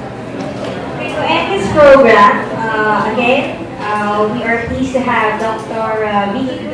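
A woman speaks into a microphone over loudspeakers in an echoing hall.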